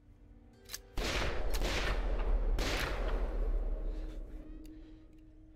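A gunshot rings out and echoes away.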